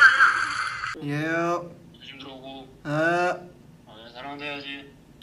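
A young man speaks softly and playfully, close to the microphone.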